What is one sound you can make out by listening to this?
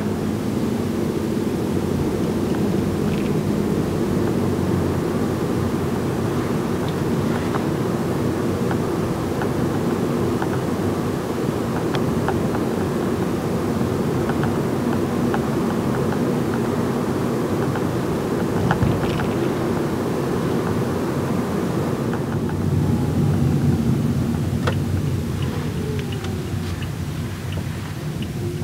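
Tyres rumble on the road surface.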